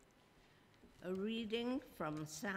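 An elderly woman speaks clearly into a microphone.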